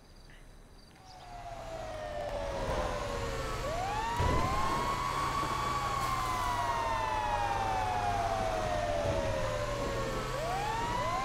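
Fire engine sirens wail and overlap loudly.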